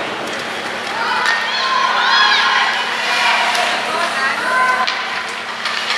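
Young hockey players shout across an echoing ice rink.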